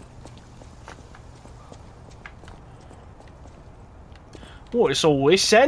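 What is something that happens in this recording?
Footsteps tap on a stone street.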